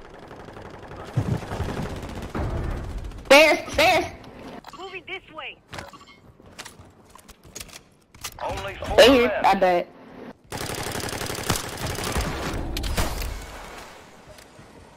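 An automatic rifle fires in bursts.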